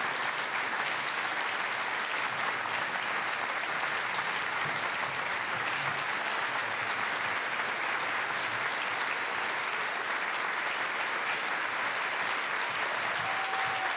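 A crowd applauds steadily in a large echoing room.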